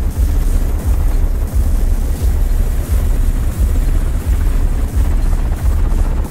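A helicopter engine whines loudly.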